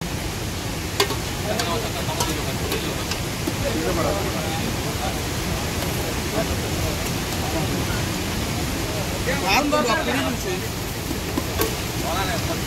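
A metal ladle clinks and scrapes against a pot.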